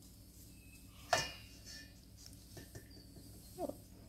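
Water splashes into a metal bowl.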